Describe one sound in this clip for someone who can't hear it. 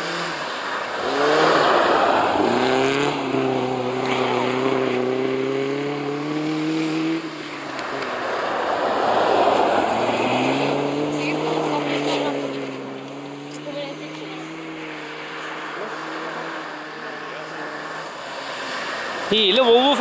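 Snow sprays and hisses from spinning tyres.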